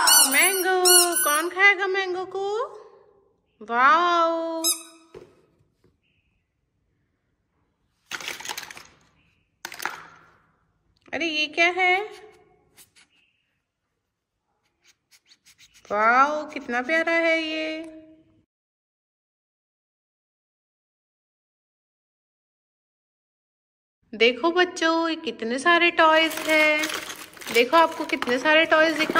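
A rubber squeeze toy squeaks loudly, again and again.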